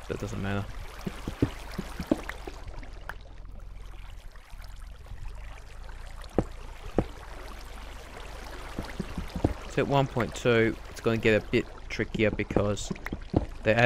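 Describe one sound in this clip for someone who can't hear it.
A pickaxe chips and knocks at stone.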